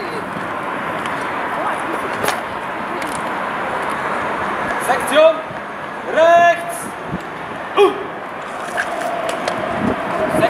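Muskets clatter as soldiers handle them in unison.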